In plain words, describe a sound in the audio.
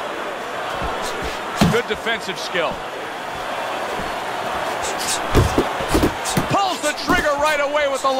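Punches thud against a boxer's body.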